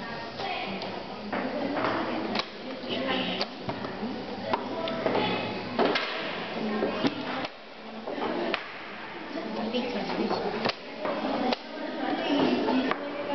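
Chess pieces clack on a wooden board.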